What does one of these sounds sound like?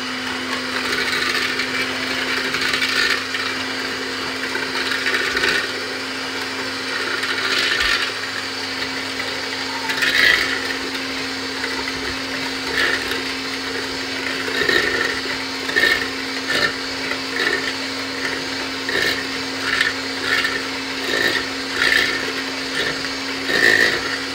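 Mixer beaters rattle and scrape against a bowl.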